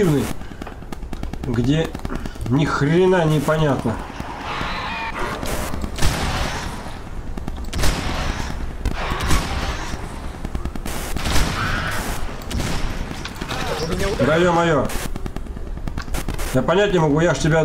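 A gun fires in sharp, repeated shots.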